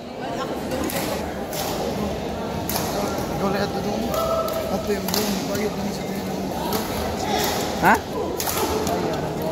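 Badminton rackets smack a shuttlecock in a large echoing hall.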